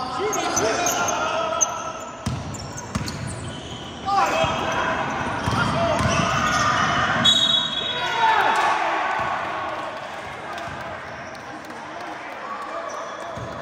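Young players shout and call out to each other in a large echoing hall.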